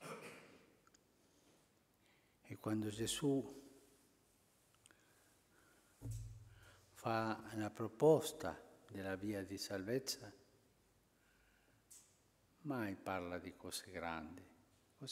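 An elderly man speaks slowly and calmly into a microphone.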